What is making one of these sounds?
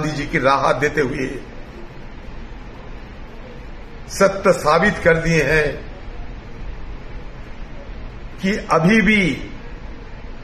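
A middle-aged man speaks calmly in short phrases, close by.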